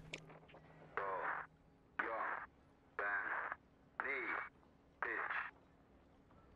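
A countdown beeps once a second.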